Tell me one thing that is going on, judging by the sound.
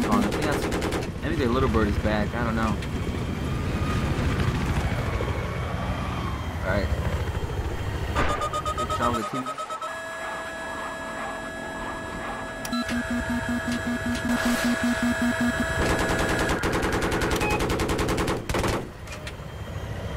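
A helicopter engine and rotor drone steadily.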